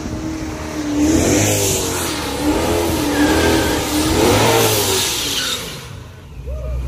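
A car engine roars and revs up again and again as it speeds closer.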